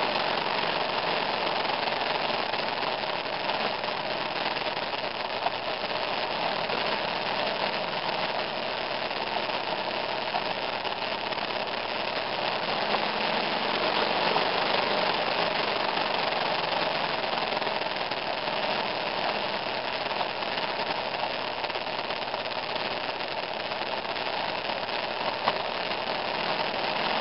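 Heavy rain falls steadily outdoors.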